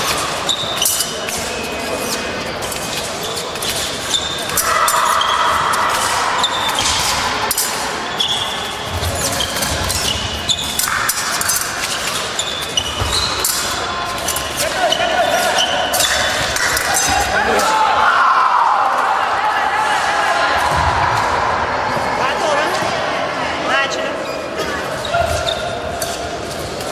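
Shoes squeak and thud on a wooden floor in a large echoing hall.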